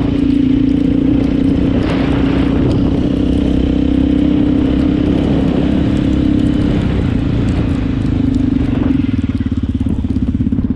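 A quad bike engine hums loudly and steadily up close.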